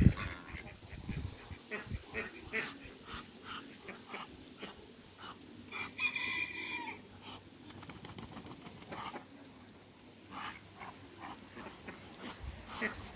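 Ducks and geese quack, hiss and honk nearby.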